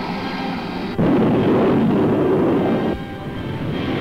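A jet afterburner blasts with a loud roar.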